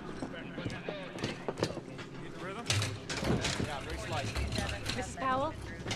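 A metal stretcher rattles and clanks.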